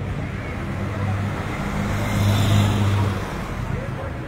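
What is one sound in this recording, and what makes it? A van engine hums as it drives past.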